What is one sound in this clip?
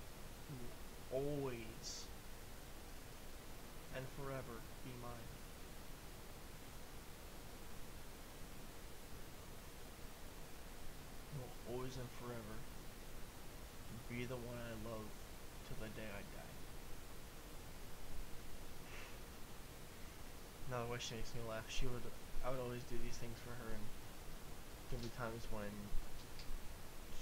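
A young man sings softly and slowly into a close microphone.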